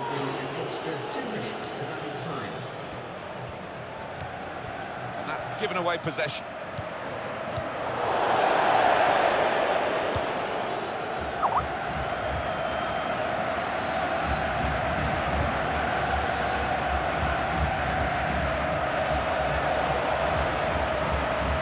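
A large stadium crowd roars and chants steadily, swelling louder for a while.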